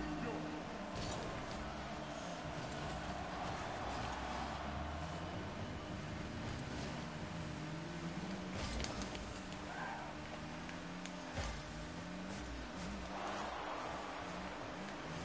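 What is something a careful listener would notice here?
A racing car engine hums and revs up and down.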